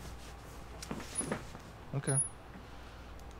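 A young man answers briefly in a low voice.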